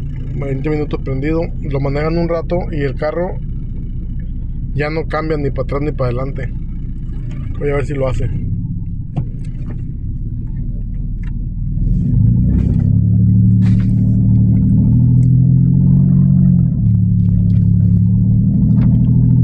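A car engine hums steadily inside the car, growing louder as the car drives off.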